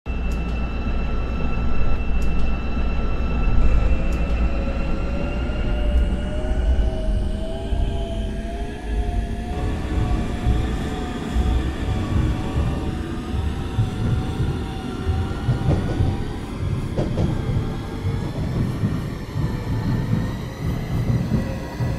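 A train's electric motor whines, rising and falling in pitch.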